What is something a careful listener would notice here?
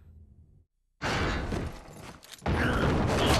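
A gun clicks as it is readied.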